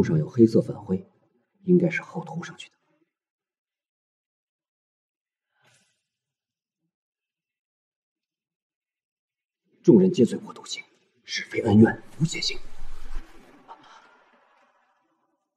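A young man speaks quietly and close by.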